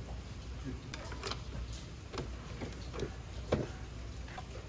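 A coffee machine lever clicks shut.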